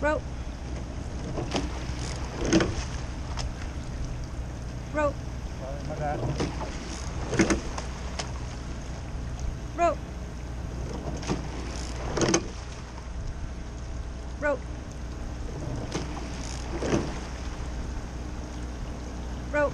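Water splashes and swirls against the oar blades and hull.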